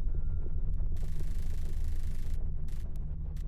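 A menu swishes as a game map slides to a new view.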